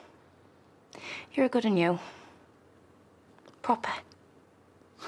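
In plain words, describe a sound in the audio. A young woman speaks quietly and with emotion.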